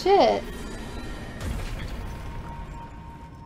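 A magic blast bursts with a deep whoosh.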